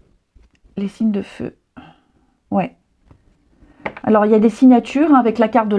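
Playing cards rustle and slide against each other.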